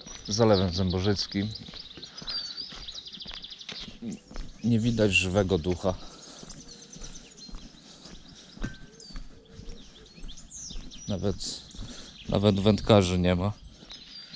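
Wheels roll over brick paving outdoors.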